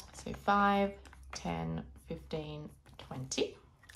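A pen scratches on a paper card.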